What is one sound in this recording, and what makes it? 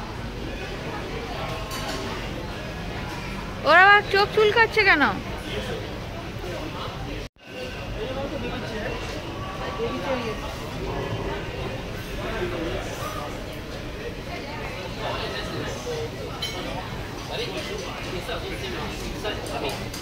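Many people chatter indistinctly nearby, in a busy room.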